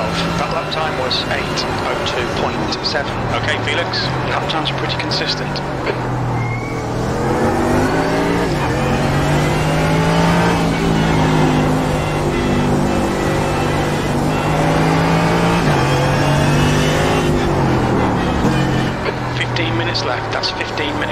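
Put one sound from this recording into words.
A race car engine roars loudly, dropping in pitch on hard braking and rising as it accelerates through the gears.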